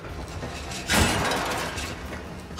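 A metal grate bursts apart with a loud crash.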